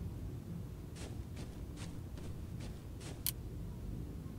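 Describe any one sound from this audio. Footsteps tread lightly across a floor.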